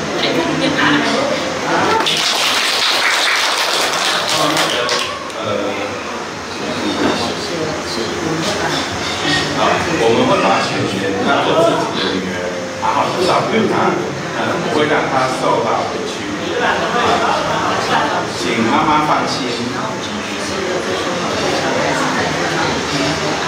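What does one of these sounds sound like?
A middle-aged man speaks with animation into a microphone over a loudspeaker.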